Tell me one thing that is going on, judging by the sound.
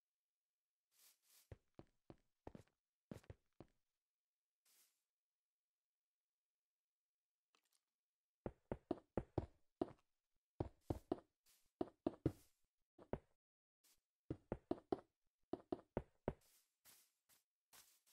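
Quick footsteps tap on hard stone in bursts.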